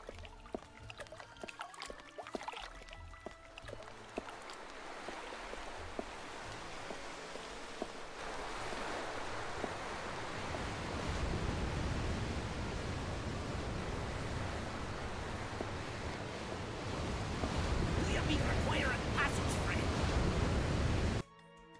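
Waves wash steadily nearby, growing louder.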